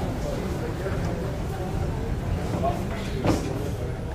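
A wooden door creaks as a hand pushes it.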